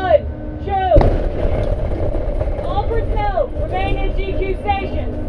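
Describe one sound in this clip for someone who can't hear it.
A huge underwater explosion booms with a deep rumble.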